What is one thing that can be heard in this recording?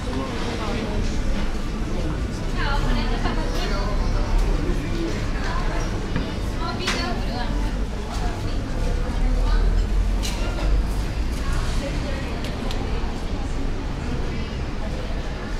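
A man and a woman chat casually nearby.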